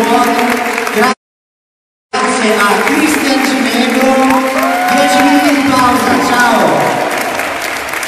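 Young people sing together through microphones and loudspeakers in a large echoing hall.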